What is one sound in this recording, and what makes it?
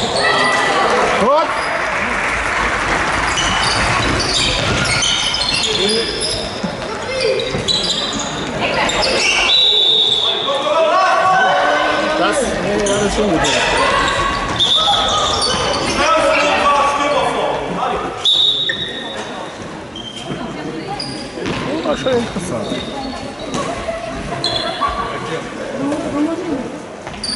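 Young players shout and call out in a large echoing hall.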